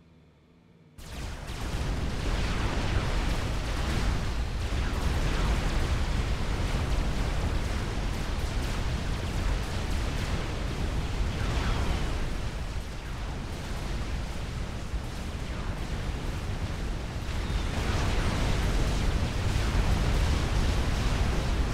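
Heavy explosions boom and rumble without pause.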